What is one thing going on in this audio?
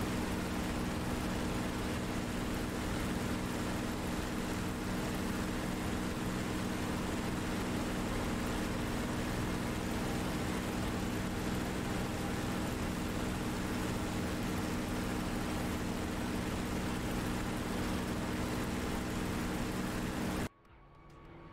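Wind rushes past the cockpit canopy.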